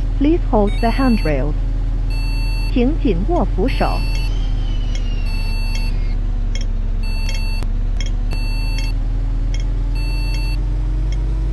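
A turn signal ticks in a steady rhythm.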